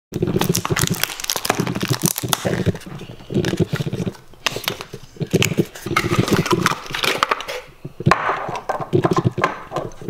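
Cardboard rustles and scrapes as a box is opened.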